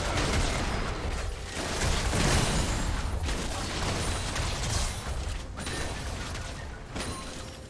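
Fantasy spells whoosh and crackle during a busy battle.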